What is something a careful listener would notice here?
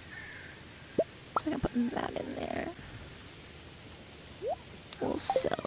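Short rising electronic blips pop as a game menu opens and closes.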